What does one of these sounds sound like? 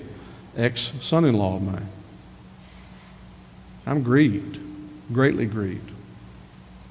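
An older man speaks with emphasis through a microphone, in short bursts with pauses.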